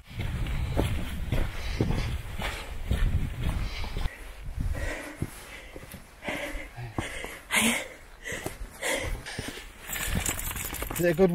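Footsteps crunch on a rocky dirt path.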